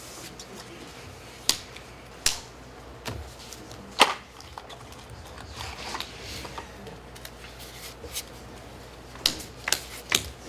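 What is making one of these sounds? Cards are shuffled and riffled in hand.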